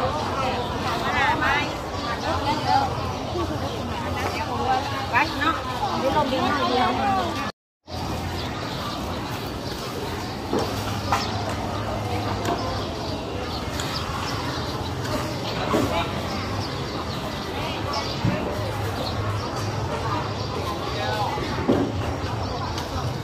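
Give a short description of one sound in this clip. A crowd of men and women chatters all around, close by.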